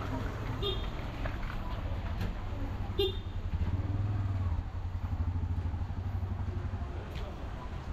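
A motor rickshaw engine idles close by.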